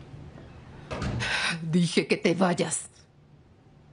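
A woman speaks in a strained, tearful voice close by.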